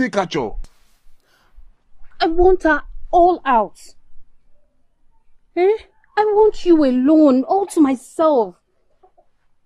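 A woman speaks nearby, shouting and wailing in distress.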